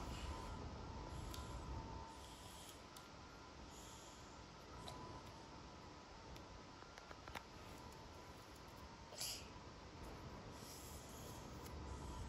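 Small plastic parts click and tap softly close by.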